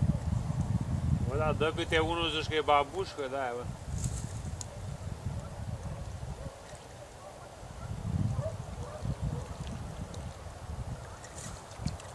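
A fishing reel whirs as a line is wound in.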